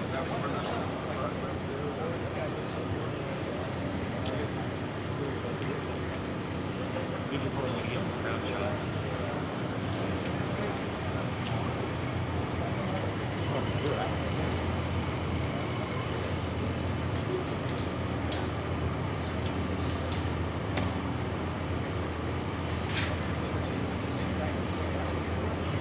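A crowd of people murmurs and talks outdoors.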